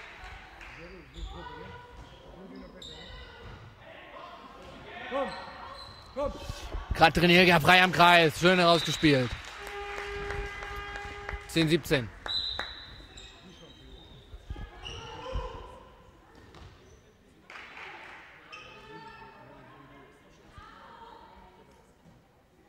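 Players call out to each other in a large echoing hall.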